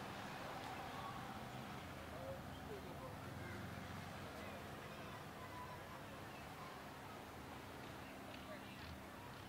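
Small waves wash gently onto a shore outdoors.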